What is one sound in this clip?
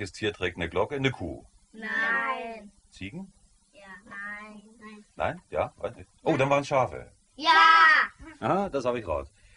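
Children talk excitedly close by.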